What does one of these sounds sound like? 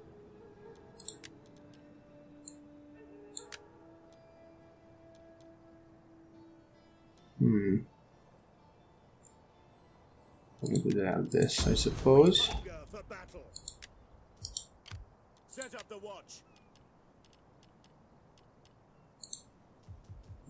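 Soft interface clicks tick now and then.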